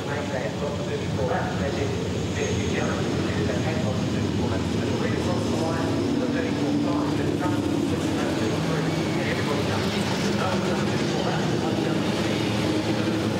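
Racing car engines roar and rumble as a pack of cars drives past.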